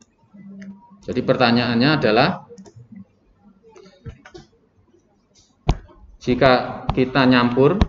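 A young man speaks calmly into a nearby microphone, explaining.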